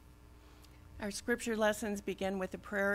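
A woman speaks clearly into a microphone, heard through a loudspeaker in an echoing room.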